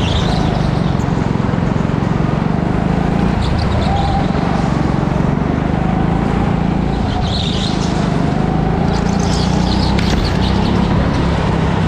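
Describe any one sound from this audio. A go-kart engine drones loudly up close, rising and falling as it speeds up and slows.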